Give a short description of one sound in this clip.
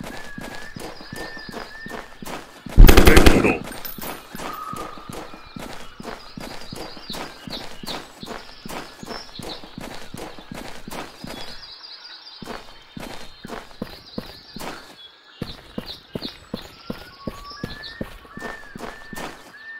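Footsteps crunch steadily on sand and rock.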